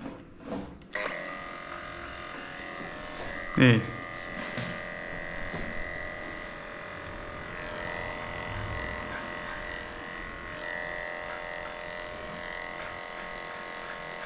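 Electric hair clippers buzz steadily up close.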